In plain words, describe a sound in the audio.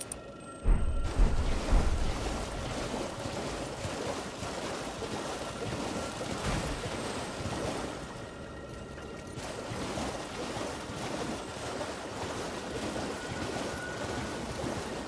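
A horse splashes at a gallop through shallow water.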